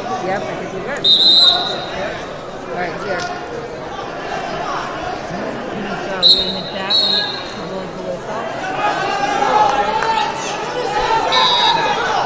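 A referee blows short sharp whistle blasts.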